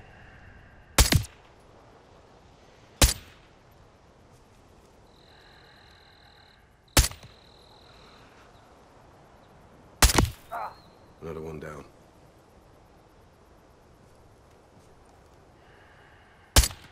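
A sniper rifle fires sharp, loud shots every few seconds.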